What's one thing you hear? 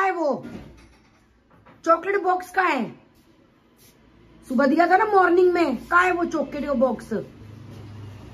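A young girl speaks in a high, lively voice close by.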